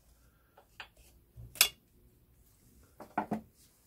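A metal part clinks as it is pulled free.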